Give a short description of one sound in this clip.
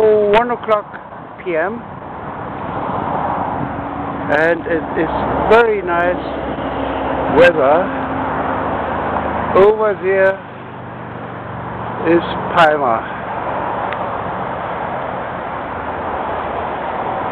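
Wind blows steadily across the open shore.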